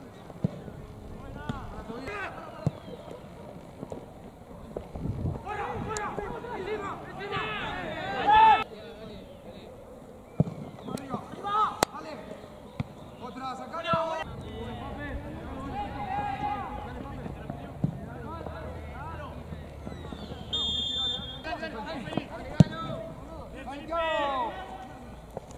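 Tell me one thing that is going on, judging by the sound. Young men shout to each other across a football pitch outdoors.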